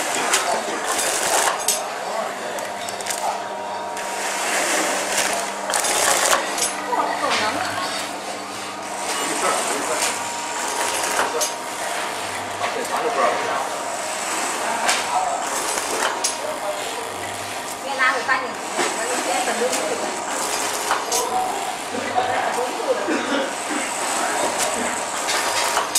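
A packaging machine hums and clatters steadily.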